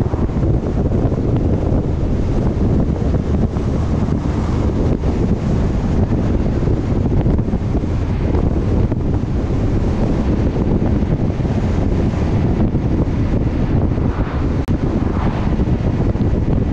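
Wind buffets loudly against a moving vehicle.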